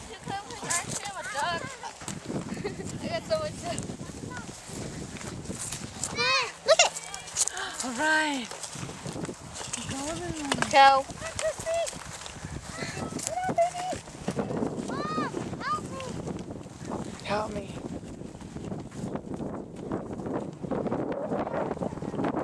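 Girls and women talk and call out excitedly nearby, outdoors.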